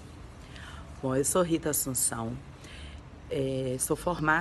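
A woman talks warmly and with animation, close to the microphone.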